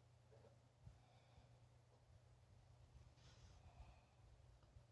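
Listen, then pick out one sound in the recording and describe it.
Tiny baby rodents squeak faintly.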